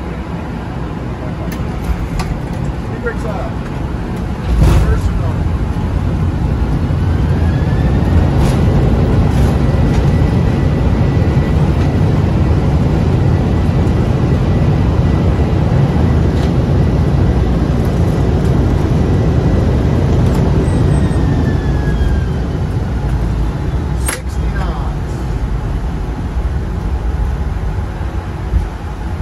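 Jet engines roar steadily as an airliner rolls down a runway.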